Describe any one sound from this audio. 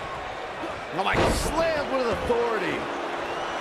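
A heavy body slams onto the mat with a loud thud.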